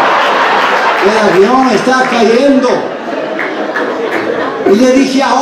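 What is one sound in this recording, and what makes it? A man speaks over a microphone and loudspeakers in a large echoing hall.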